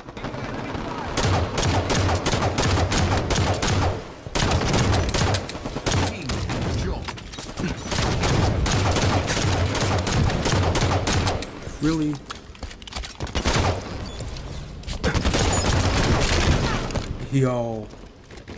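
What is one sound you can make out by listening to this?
Rapid gunfire and blasts ring out.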